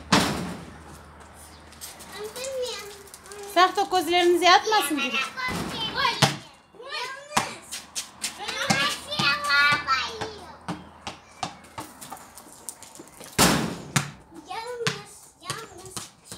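A ball bounces on concrete.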